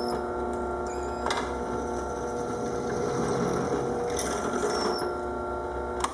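A drill bit grinds into a block.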